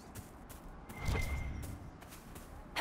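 A chest creaks open with a heavy thud.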